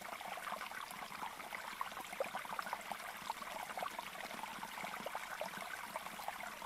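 A small caged bird chirps and twitters rapidly and steadily.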